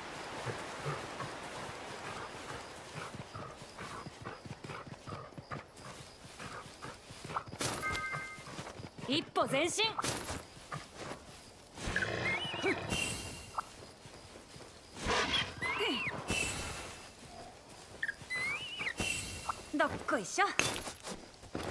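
Footsteps of a creature thud on grass and rock.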